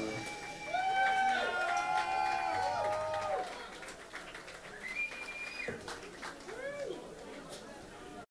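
Electric guitars play loud, wailing bent notes through amplifiers.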